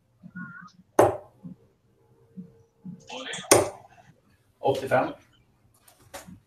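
Steel-tip darts thud into a bristle dartboard.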